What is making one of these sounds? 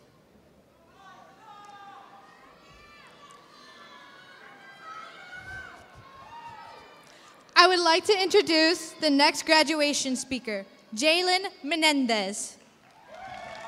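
A young woman speaks clearly into a microphone, heard over loudspeakers in a large hall.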